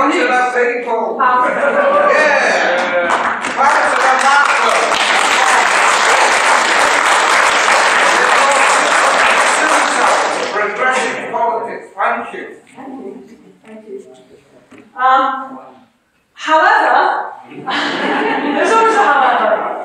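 A young woman speaks with animation into a microphone in a large hall.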